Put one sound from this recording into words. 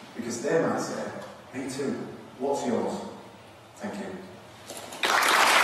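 A man speaks to a large audience through a microphone in an echoing hall.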